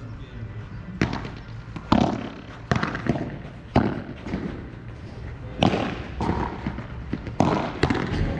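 Padel rackets strike a ball with sharp hollow pops, back and forth.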